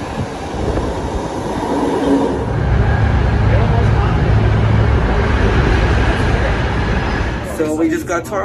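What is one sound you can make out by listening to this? A train rumbles loudly along the tracks.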